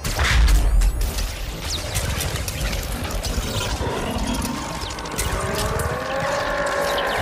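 Electricity crackles and snaps loudly in sharp bursts.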